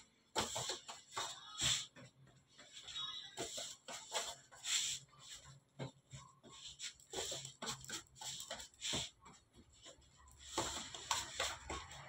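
Soft lumps of dough tap and thud onto a metal baking tray.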